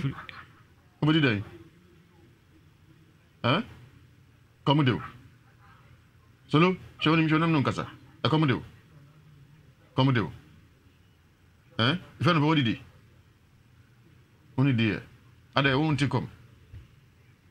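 A young man speaks in short, halting phrases with long pauses, heard through a microphone.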